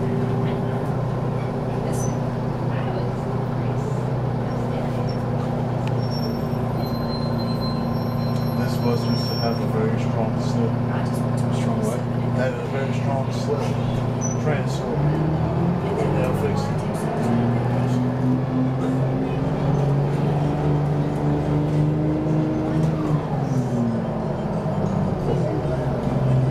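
Metal parts of a bus rattle over bumps.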